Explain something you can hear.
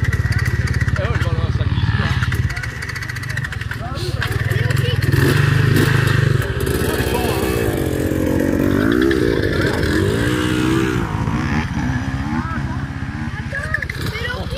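Enduro dirt bike engines idle outdoors.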